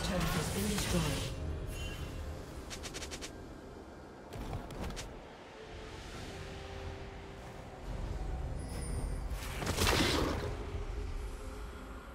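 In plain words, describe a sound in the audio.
Video game sound effects whoosh and chime.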